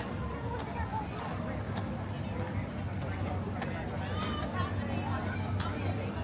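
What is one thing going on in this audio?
A crowd of people chatter in the open air nearby.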